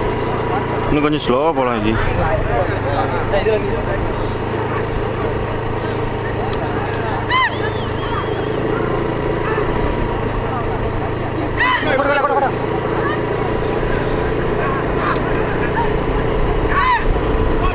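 Men shout loudly to urge on racing bullocks.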